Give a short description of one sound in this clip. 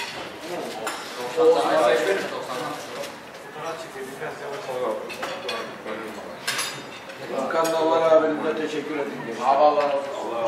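Many men and women chatter at once around the room.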